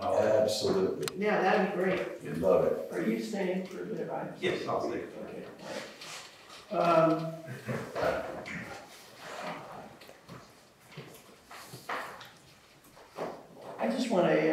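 A middle-aged man speaks calmly in a meeting, heard through a room microphone.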